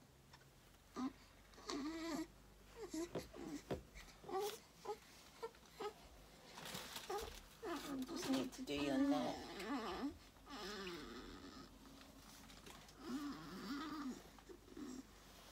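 A newborn baby cries and whimpers close by.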